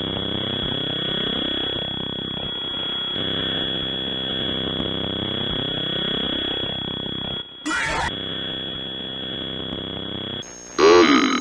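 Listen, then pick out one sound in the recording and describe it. Buzzy retro electronic game music plays.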